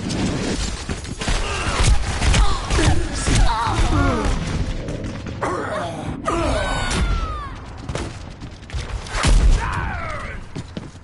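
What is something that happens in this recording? Gunfire and explosions crack and boom in bursts.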